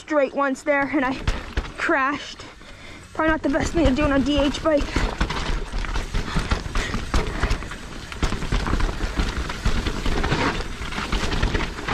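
A bike rattles and clatters over bumps and roots.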